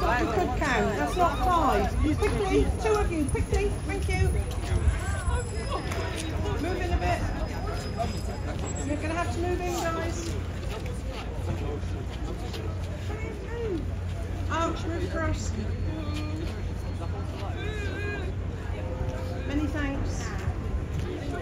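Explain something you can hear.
Young people chatter and talk lively nearby.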